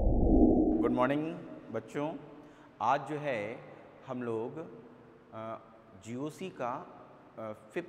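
A man speaks clearly and steadily, close to a microphone.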